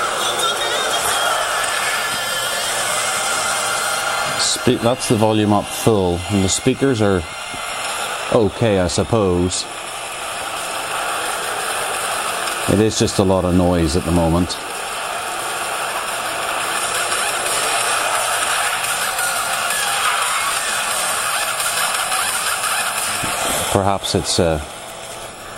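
A racing game's car engine roars from a small handheld speaker.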